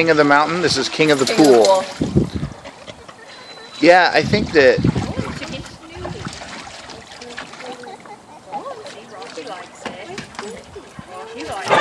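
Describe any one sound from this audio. Water splashes as dogs step about in a shallow pool.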